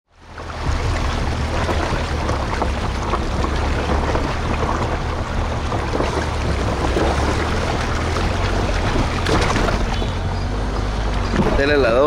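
Tyres splash and swish steadily through deep water.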